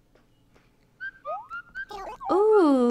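Short chirpy electronic blips sound in a quick run.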